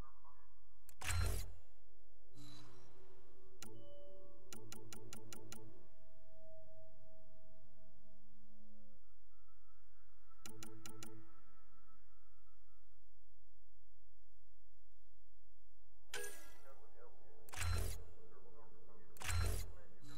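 Short electronic clicks and beeps sound as menu options are selected.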